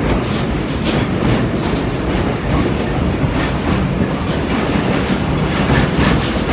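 A passenger car rumbles along the track, heard from between cars.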